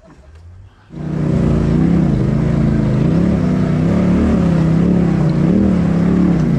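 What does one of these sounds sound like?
An off-road vehicle's engine rumbles loudly as it crawls over rocks.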